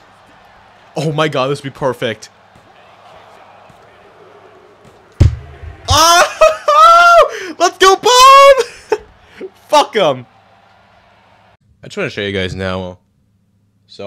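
A young man talks close to a microphone, then shouts excitedly.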